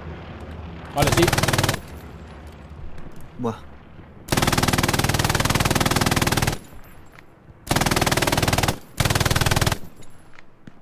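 A machine gun fires in loud rapid bursts.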